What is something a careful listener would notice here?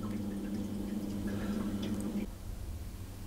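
A spoon scrapes softly inside a silicone mould.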